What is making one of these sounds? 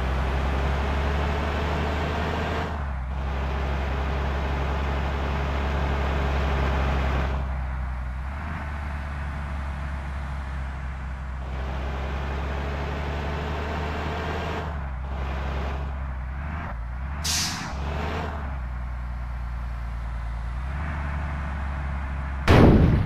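A diesel coach bus engine drones under load in a driving game, then eases off as the bus slows.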